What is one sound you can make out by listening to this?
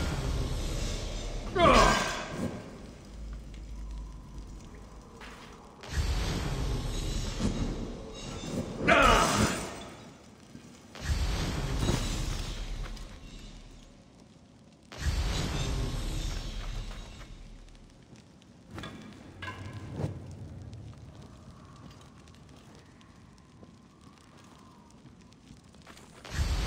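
A torch flame crackles and roars.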